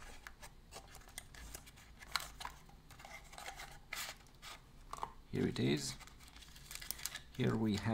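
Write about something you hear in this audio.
Cardboard packaging rustles and crinkles as it is opened by hand.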